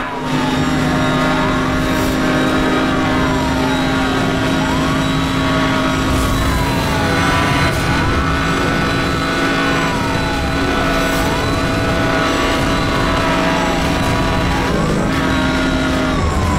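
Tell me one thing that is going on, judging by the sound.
A police siren wails in repeating falling sweeps.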